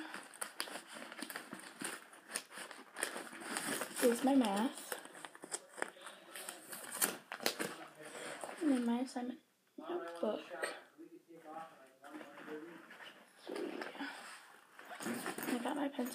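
Papers and notebooks rustle as a girl digs through a backpack.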